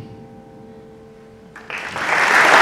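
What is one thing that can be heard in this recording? An orchestra plays softly in a large hall.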